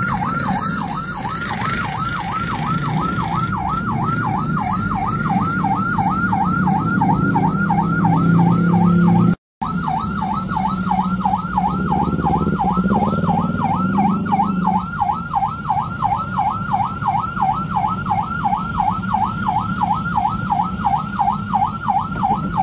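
A siren wails rapidly up and down, close by.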